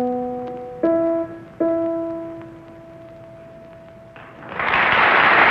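Piano chords ring out and slowly fade.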